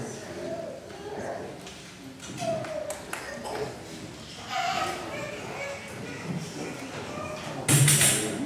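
A small group of musicians plays acoustic guitars.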